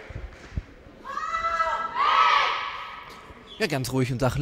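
A group of young women shout a cheer together in an echoing hall.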